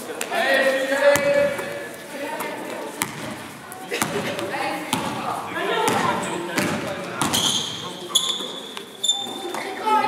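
Young women call out to each other across the court.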